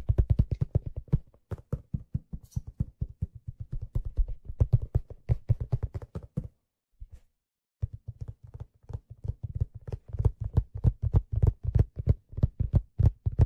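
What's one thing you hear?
Hands tap out quick, rhythmic strokes on a steel hand drum, pausing briefly midway.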